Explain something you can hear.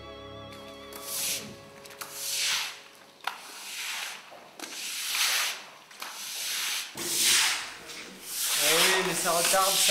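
A broom sweeps and swishes across a wet floor.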